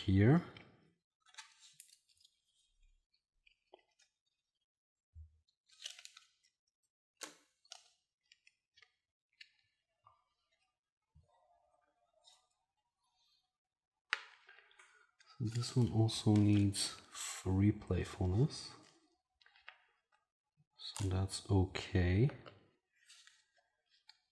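Game cards and pieces click and rustle on a table.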